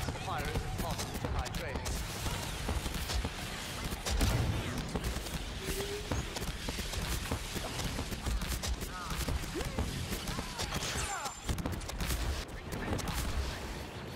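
Laser blasts fire rapidly.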